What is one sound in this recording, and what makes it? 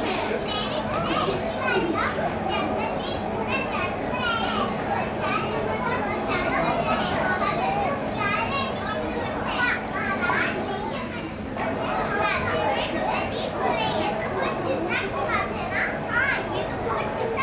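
Young children speak and chatter through a microphone in a large echoing hall.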